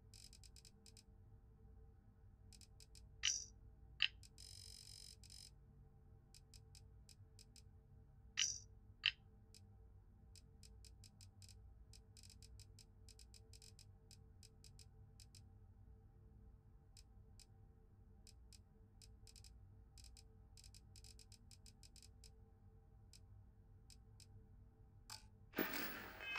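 Soft interface ticks click rapidly, one after another.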